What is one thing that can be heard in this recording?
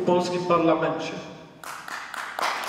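A middle-aged man speaks loudly into a microphone in an echoing hall.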